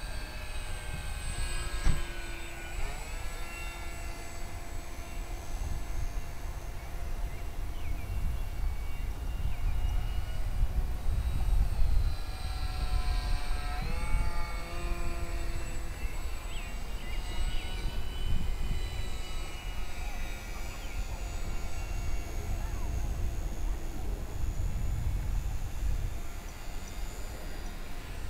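A small electric propeller motor whines, rising and falling in pitch.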